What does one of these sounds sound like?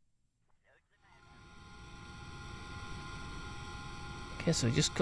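A rocket engine roars steadily.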